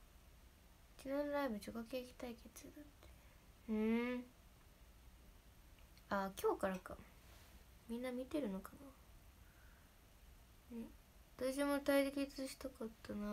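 A young woman speaks softly and close to a microphone, in short bursts.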